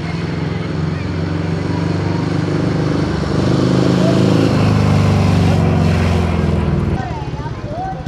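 A motorcycle engine roars and revs loudly.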